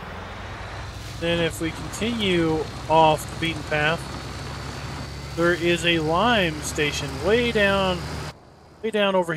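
A utility vehicle's engine hums as it drives along.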